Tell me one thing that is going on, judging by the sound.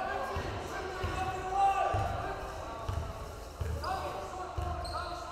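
A basketball bounces in a steady rhythm on a wooden floor in an echoing gym.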